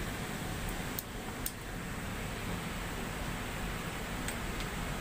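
Small plastic clicks come as a plug is handled close by.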